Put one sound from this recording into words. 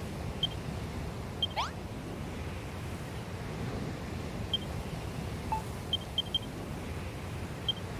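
Short, soft electronic blips sound now and then.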